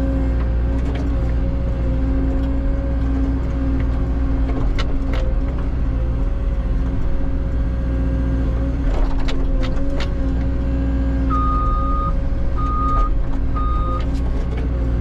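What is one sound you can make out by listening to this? Metal clanks and knocks as the bucket moves.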